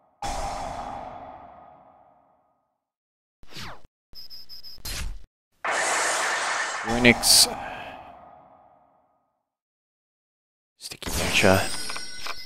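Electronic game sound effects whoosh, chime and boom in short bursts.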